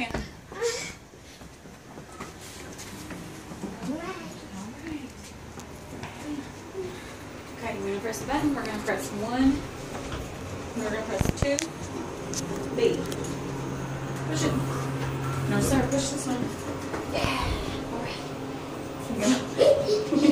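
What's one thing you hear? A young woman talks to small children close by.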